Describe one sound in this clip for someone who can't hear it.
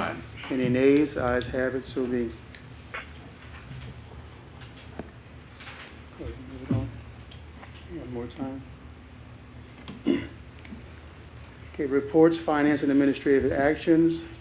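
A man speaks calmly into a microphone, heard through a room's loudspeakers.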